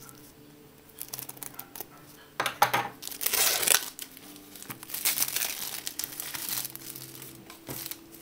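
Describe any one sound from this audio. Plastic wrap crinkles and rustles as hands peel it off a box.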